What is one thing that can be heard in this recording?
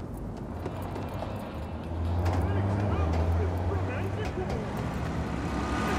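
A car engine rumbles as a vehicle drives along a street.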